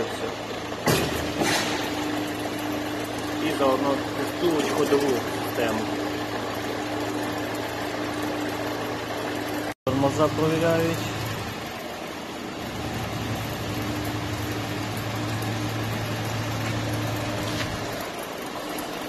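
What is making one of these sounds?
Rollers whir steadily under a car's wheel.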